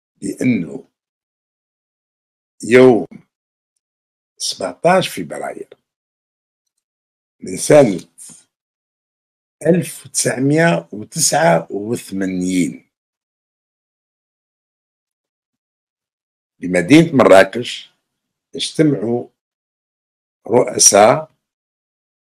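A middle-aged man speaks calmly in bursts with pauses, close to a microphone.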